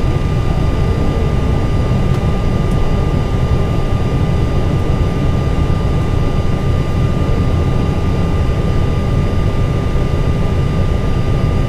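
Tyres rumble over a runway as an airliner taxis.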